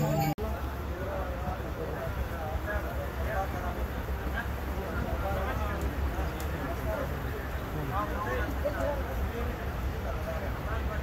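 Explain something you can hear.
A passenger train carriage rumbles along the track.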